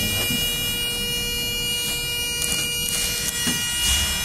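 A finger presses an elevator button with a soft click.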